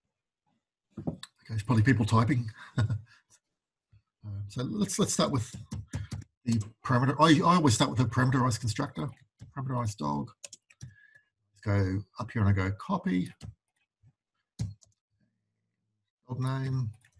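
A man talks calmly into a microphone, explaining at an even pace.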